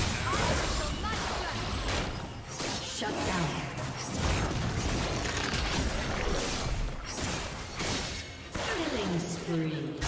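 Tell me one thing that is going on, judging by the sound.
Game combat sounds of clashing blows and magic blasts burst rapidly.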